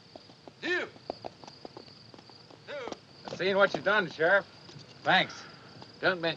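A man speaks in short, tense phrases close by.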